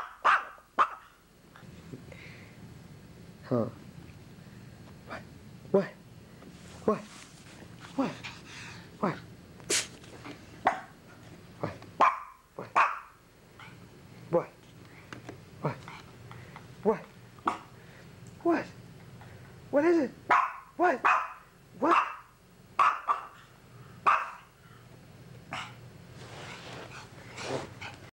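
A small dog barks sharply and repeatedly close by.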